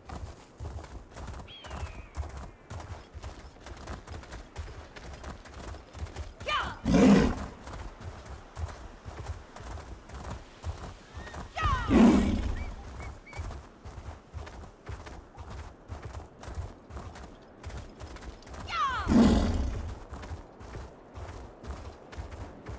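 A large animal's paws pound the ground in a quick, steady gallop.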